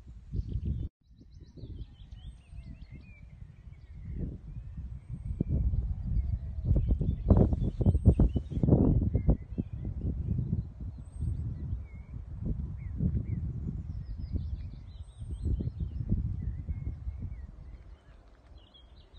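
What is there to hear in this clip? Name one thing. Wind blusters across the microphone outdoors.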